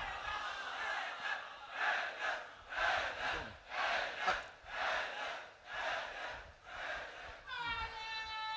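A large crowd of men chants loudly in rhythmic bursts.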